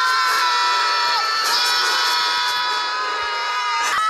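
Two men scream in panic.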